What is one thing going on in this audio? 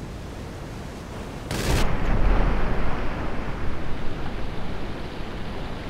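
A swimmer splashes through the water.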